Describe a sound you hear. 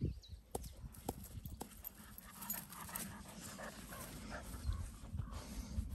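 Dogs' paws rustle through grass close by.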